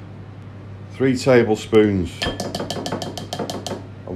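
Powder pours softly from a plastic scoop into a bowl.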